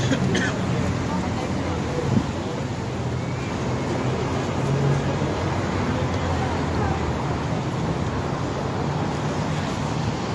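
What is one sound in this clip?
Footsteps scuff on paving stones.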